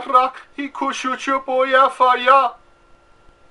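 A middle-aged man speaks emotionally, close to a microphone.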